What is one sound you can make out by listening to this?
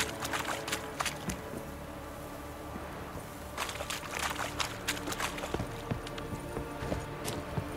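Footsteps tread on wooden boards and grass.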